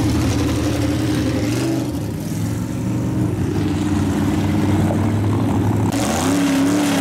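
A loud car engine rumbles and idles close by.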